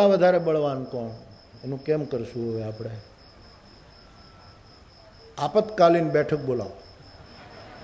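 An elderly man speaks expressively into a microphone, pausing between phrases.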